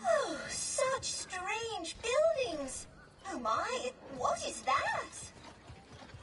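A robot speaks in a warbling electronic voice.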